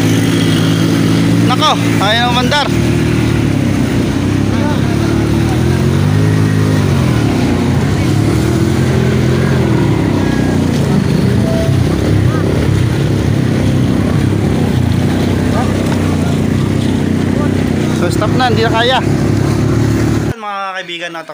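Motorcycle engines rumble and rev through deep water.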